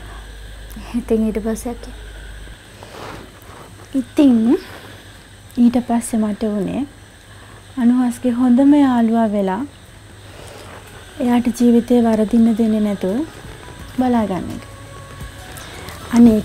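A young woman speaks calmly and close by, in short phrases with pauses.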